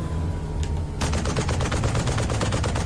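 A heavy machine gun fires in a rapid burst.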